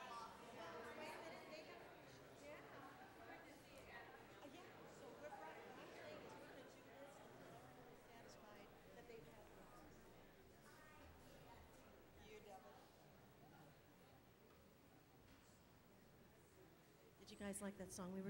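Many adults and children chat at once in a large echoing room.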